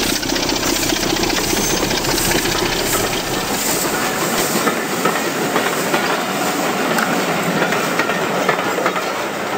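A model train rumbles and clatters along its track close by.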